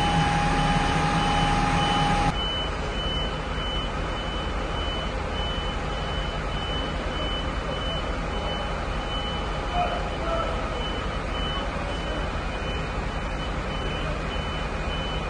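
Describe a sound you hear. Fire truck engines idle with a steady low rumble.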